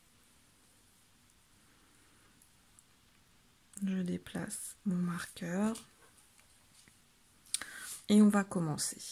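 Knitting needles click and tap softly.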